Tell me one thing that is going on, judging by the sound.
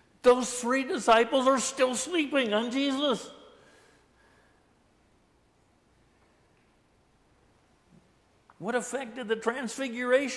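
An elderly man speaks with animation through a microphone in a reverberant room.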